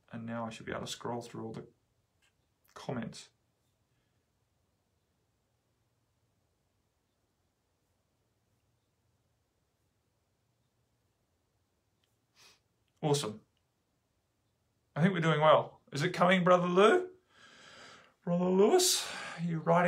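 A middle-aged man speaks calmly and close to a microphone, with long pauses.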